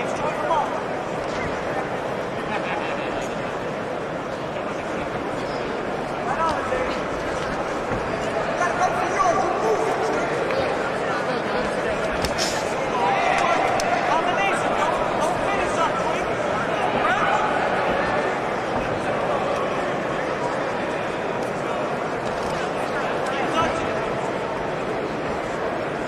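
Boxing gloves thud against a boxer's body and head.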